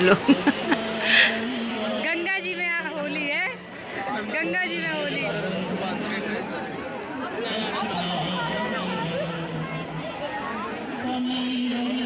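A crowd of men and women chatter and cheer close by.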